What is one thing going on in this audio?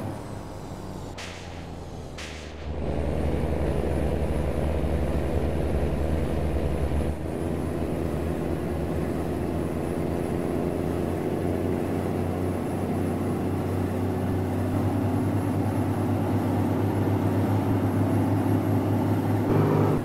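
A bus engine drones steadily as it drives along a road.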